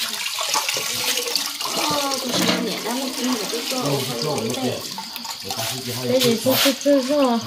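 Wet rice splashes as it drops into water.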